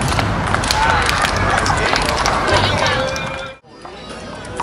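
Young men and women chat and call out to each other outdoors.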